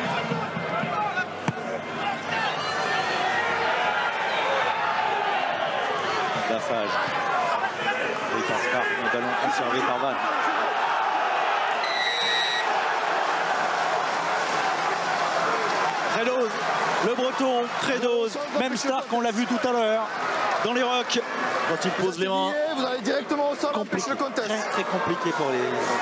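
A large crowd cheers and murmurs in an open stadium.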